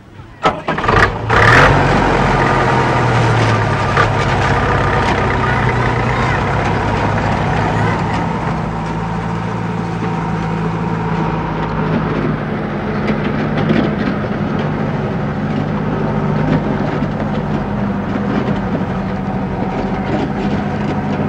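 A truck engine rumbles steadily as the truck drives away.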